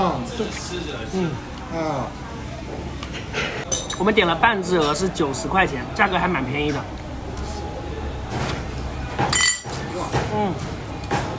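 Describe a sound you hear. A man chews and slurps food noisily.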